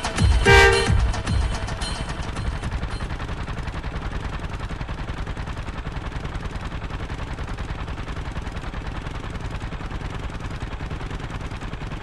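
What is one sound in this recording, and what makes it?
A small motor rickshaw engine putters steadily with a rapid chugging beat.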